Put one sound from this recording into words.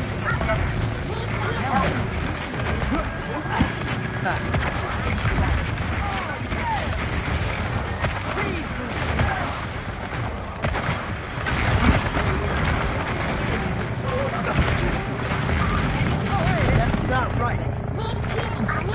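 A gun fires rapid shots throughout.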